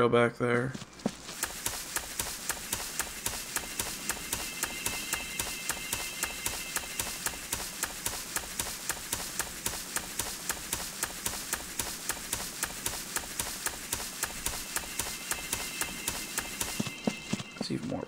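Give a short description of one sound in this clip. Footsteps rustle softly through grass at a steady pace.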